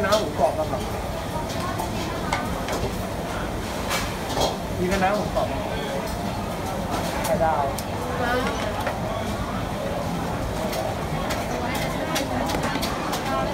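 Dishes and utensils clatter now and then.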